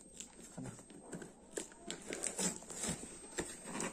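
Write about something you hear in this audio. Scissors snip through cardboard.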